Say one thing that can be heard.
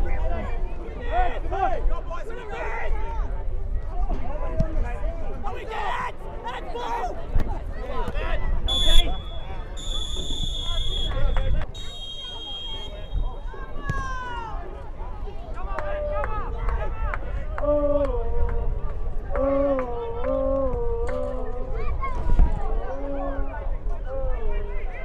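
Men shout to each other outdoors.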